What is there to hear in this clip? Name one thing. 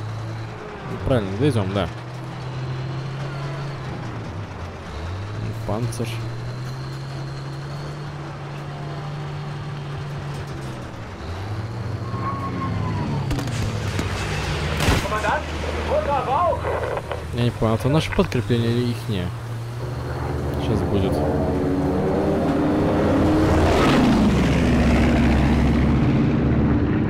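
A tank engine rumbles and clanks steadily.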